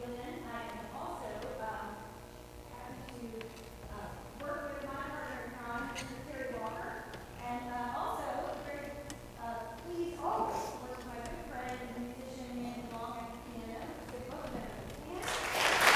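A choir of young voices sings together in a large echoing hall.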